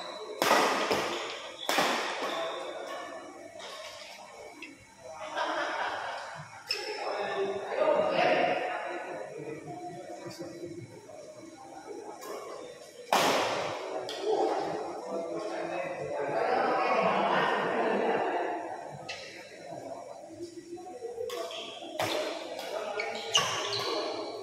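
A racket hits a shuttlecock with sharp smacks.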